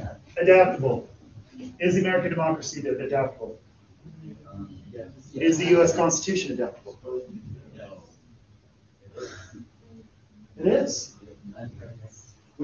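A man speaks in a lecturing tone, somewhat distant in a room with a slight echo.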